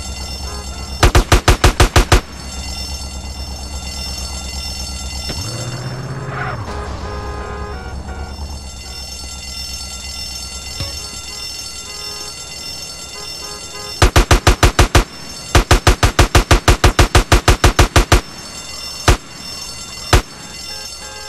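A machine gun fires rapid bursts, loud and close.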